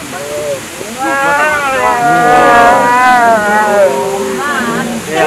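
A tiger gives a long, low moaning call.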